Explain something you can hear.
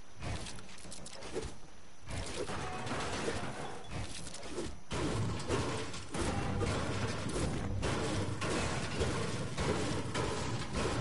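Building pieces in a video game snap rapidly into place with clattering clicks.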